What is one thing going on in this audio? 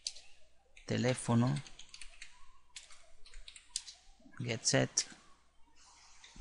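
Keys clack on a computer keyboard as someone types.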